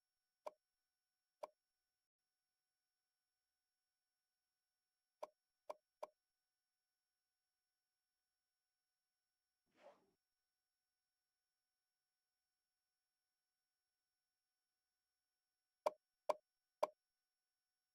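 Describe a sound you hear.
Short menu clicks tick now and then as selections change.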